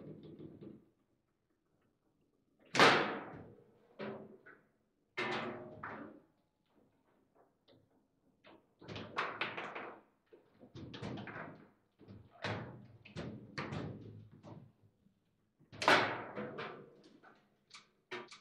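A small hard ball cracks sharply against a table game's rods and walls.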